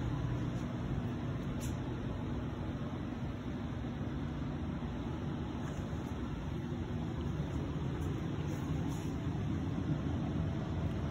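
A furnace blower hums and rumbles steadily through air ducts.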